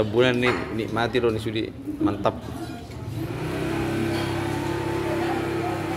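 Men chat quietly.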